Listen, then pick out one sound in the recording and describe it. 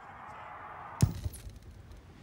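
A switch clicks.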